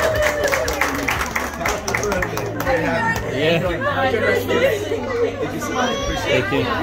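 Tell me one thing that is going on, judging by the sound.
Adults and children chatter and laugh nearby.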